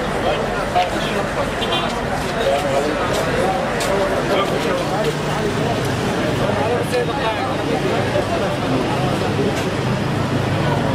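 A crowd of men talk and murmur nearby outdoors.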